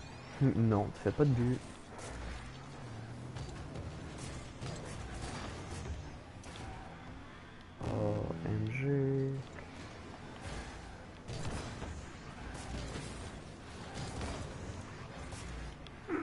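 A ball is struck with sharp thuds.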